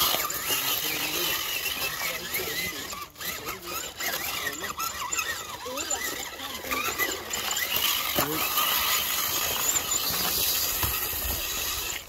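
Tyres of a radio-controlled rock crawler scrape and crunch over rocks.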